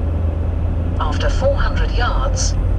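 A man speaks calmly close by inside the car.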